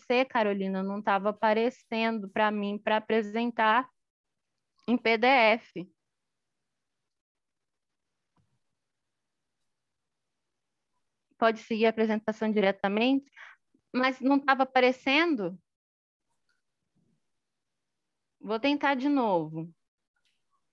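A young woman speaks calmly over an online call, with pauses.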